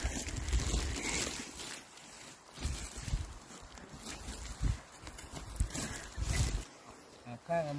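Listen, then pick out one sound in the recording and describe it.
Footsteps crunch on dry twigs and forest litter.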